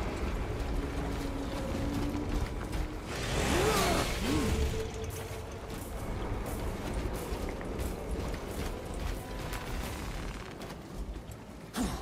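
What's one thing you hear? Heavy armoured footsteps thud steadily on the ground.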